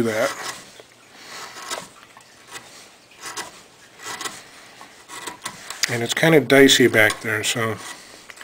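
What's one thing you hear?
A chisel scrapes and shaves wood in short strokes.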